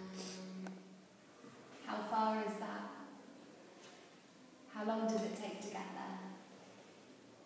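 A woman speaks calmly close by, in short phrases with pauses.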